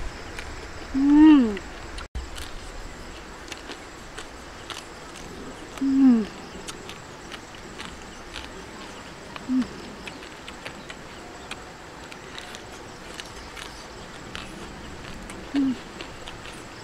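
A young woman makes short, close humming sounds of enjoyment.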